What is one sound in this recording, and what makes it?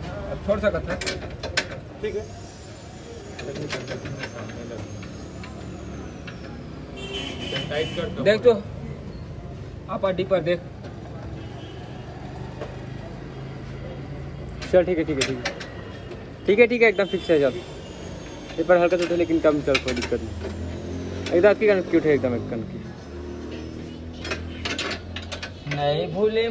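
A ratchet wrench clicks as a bolt is tightened.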